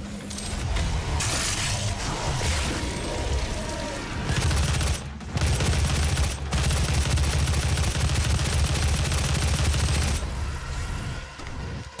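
Heavy blows squelch as monsters are torn apart.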